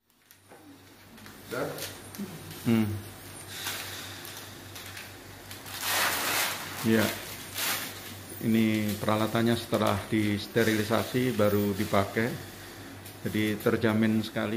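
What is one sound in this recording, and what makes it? Plastic wrapping crinkles as it is torn open.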